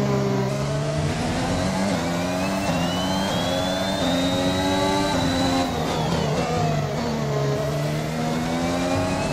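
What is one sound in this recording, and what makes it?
A racing car engine screams at high revs, climbing through the gears and dropping as it brakes.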